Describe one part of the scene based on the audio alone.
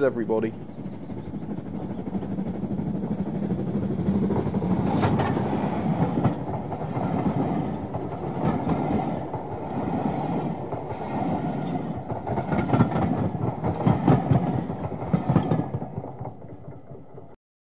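A train rolls past with a rumbling clatter.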